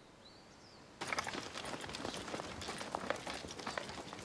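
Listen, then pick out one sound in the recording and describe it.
Footsteps crunch on a dirt yard outdoors.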